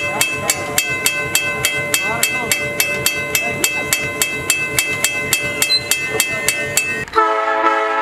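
A railroad crossing bell rings rapidly and steadily.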